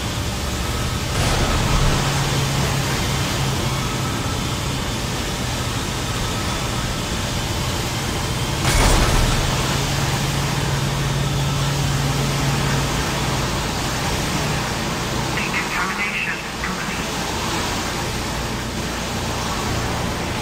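Steam hisses steadily.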